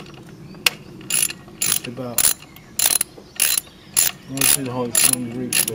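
A ratchet wrench clicks as it turns a bolt on an engine.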